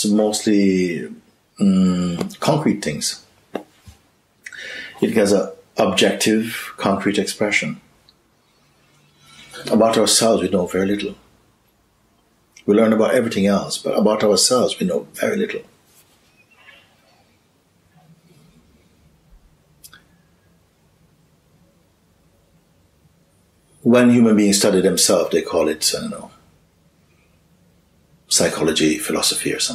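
A middle-aged man speaks expressively and close by, with pauses.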